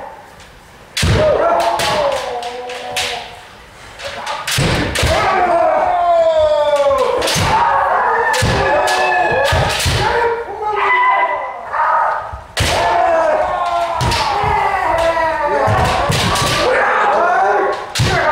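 Bamboo swords clack and strike against armour.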